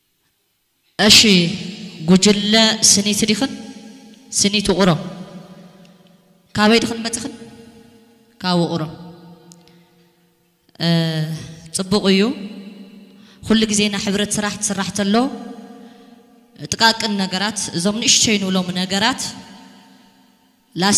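A young woman speaks with animation through a microphone and loudspeakers.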